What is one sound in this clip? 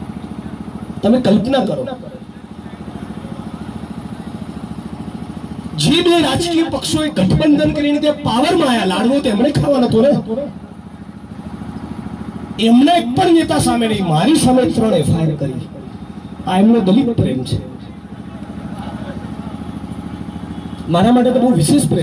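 A man speaks forcefully through a microphone and loudspeaker outdoors, in bursts with pauses.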